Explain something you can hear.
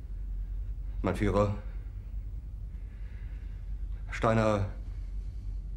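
A middle-aged man speaks slowly and hesitantly.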